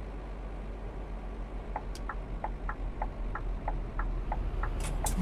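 A bus engine hums steadily at low speed.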